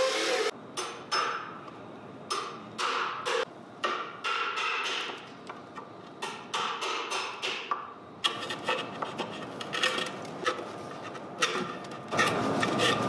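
A mallet taps a chisel into wood with sharp knocks.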